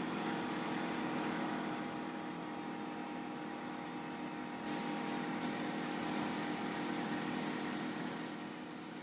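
An airbrush hisses in short bursts of spray.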